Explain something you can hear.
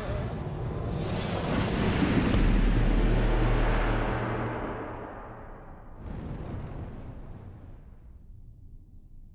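A deep booming sound swells and slowly fades.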